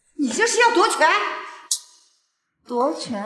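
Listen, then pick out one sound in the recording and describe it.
An elderly woman speaks sharply and angrily.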